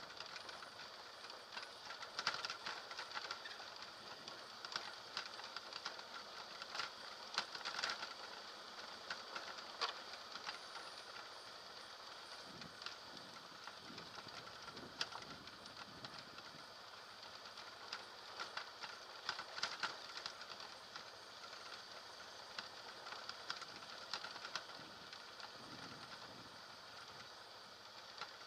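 Tyres crunch and rattle over a rough dirt track.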